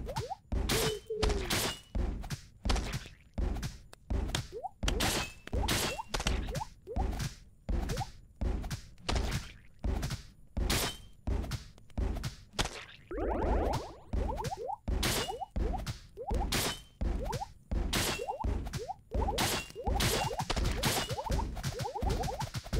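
Coins chime as they are collected.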